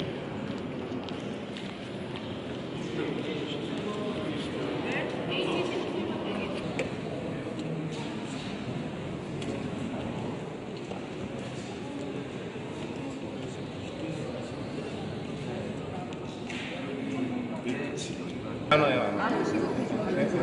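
A crowd of men and women murmurs and chats in a large echoing hall.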